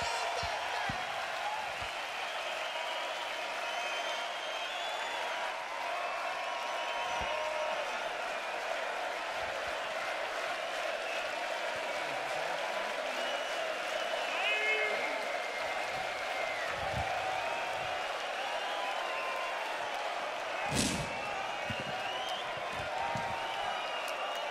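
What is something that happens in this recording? A huge outdoor crowd cheers and chants loudly and steadily.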